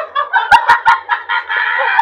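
A middle-aged man laughs heartily nearby.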